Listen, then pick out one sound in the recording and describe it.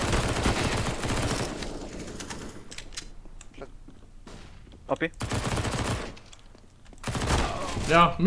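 Gunfire from a video game rattles in rapid bursts.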